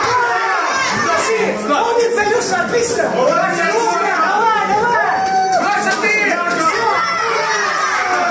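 A crowd of spectators shouts and cheers loudly throughout.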